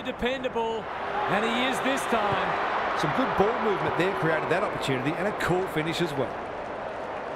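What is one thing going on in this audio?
A stadium crowd cheers louder for a few seconds.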